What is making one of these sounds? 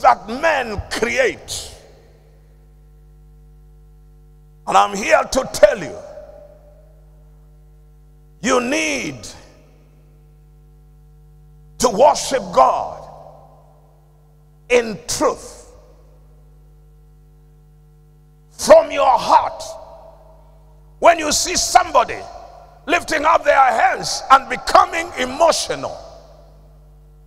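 A man preaches with animation into a microphone, in short bursts with pauses, in a reverberant hall.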